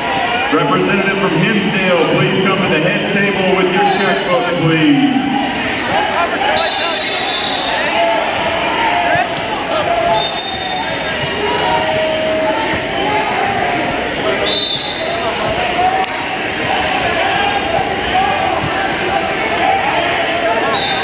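A large crowd chatters and shouts in a big echoing hall.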